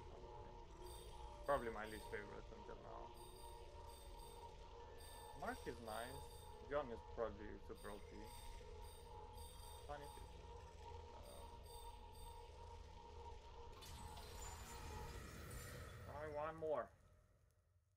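Game menu blips sound as selections change.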